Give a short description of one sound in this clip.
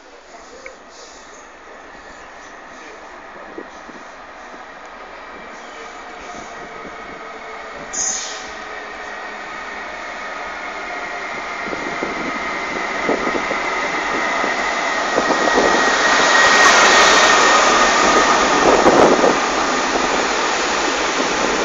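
An electric train approaches, growing steadily louder, and rumbles past close by.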